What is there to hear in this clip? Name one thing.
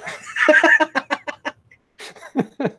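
A man laughs loudly over an online call.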